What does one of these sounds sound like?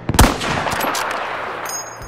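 A rifle bolt clicks as it is worked back and forth.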